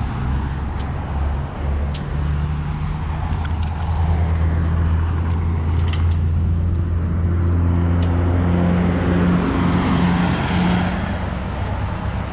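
Tyres roll along the road with a rushing sound.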